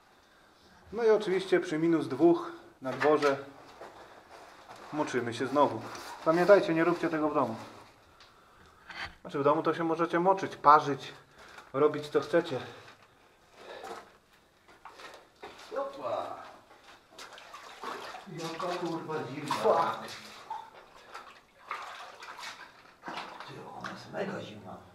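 A man speaks calmly nearby in an echoing cave.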